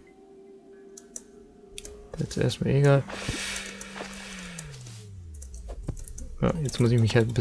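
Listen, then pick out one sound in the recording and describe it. Short electronic game sounds click and chime.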